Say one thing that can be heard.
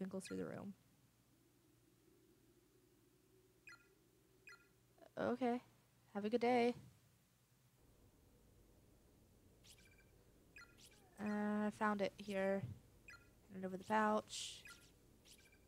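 A young woman speaks with animation into a close microphone, in short bursts.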